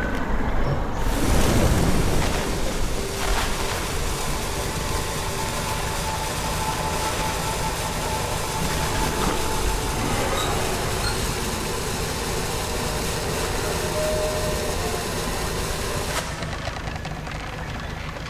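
Water churns and splashes behind a moving boat.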